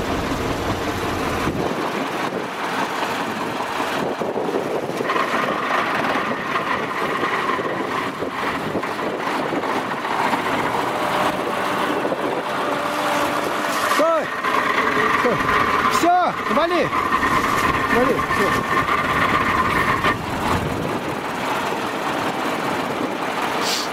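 A truck engine runs steadily close by.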